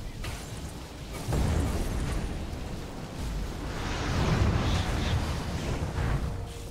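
Magic blasts and weapon clashes crackle and boom in a fierce fight.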